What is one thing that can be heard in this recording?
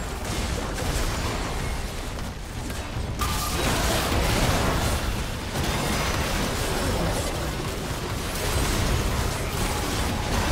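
Magical blasts and impacts crackle and boom in a video game battle.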